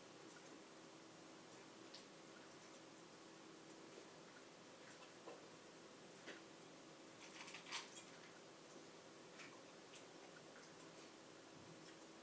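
A small dog crunches and laps food from a metal bowl nearby.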